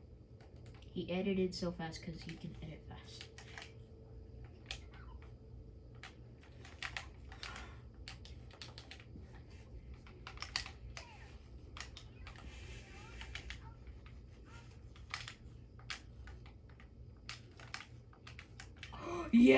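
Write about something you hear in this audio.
Video game building and shooting sounds click and tap in quick bursts through a small speaker.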